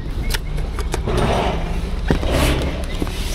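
Cardboard boxes scrape and rustle as hands shift them.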